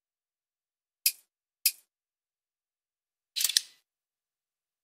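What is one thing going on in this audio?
Short electronic menu clicks sound as a selection changes.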